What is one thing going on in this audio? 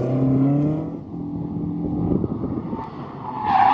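A second car engine hums at a distance.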